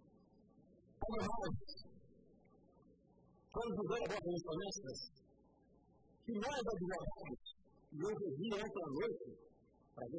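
A middle-aged man speaks firmly into a microphone in bursts, in a large echoing hall.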